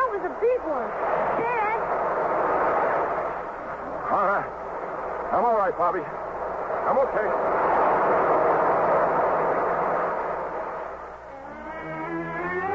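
A man speaks through an old microphone.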